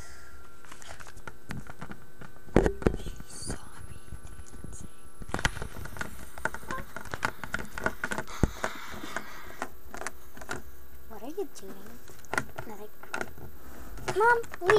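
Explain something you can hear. Small plastic toys tap and clatter against a table.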